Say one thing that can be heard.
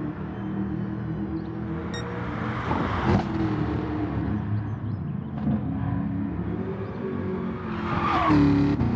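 A racing car engine roars and changes pitch as it shifts gears.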